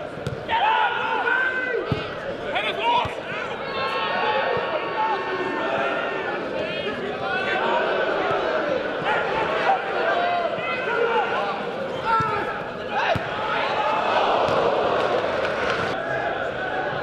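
A football crowd shouts and cheers in an outdoor stadium.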